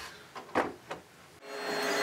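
Hands click and knock against a machine.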